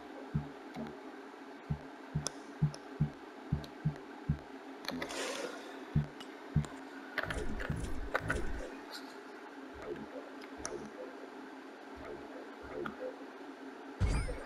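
Menu clicks and beeps sound in quick succession.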